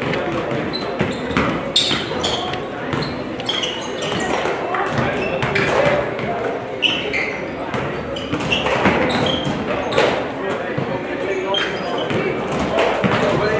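Sneakers squeak sharply on the gym floor.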